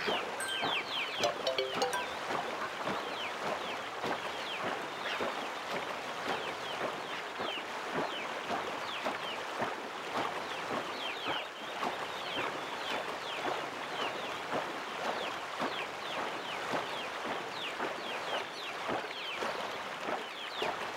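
Water rushes steadily past a boat.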